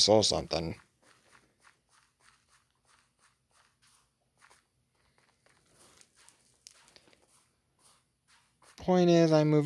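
Footsteps crunch softly on loose ground.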